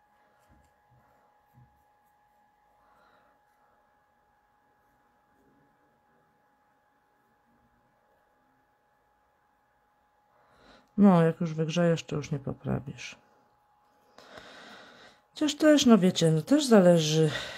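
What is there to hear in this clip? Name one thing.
Paper petals rustle and crinkle softly between fingers.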